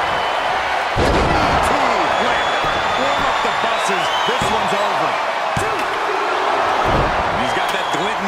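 Bodies slam onto a mat with heavy thuds.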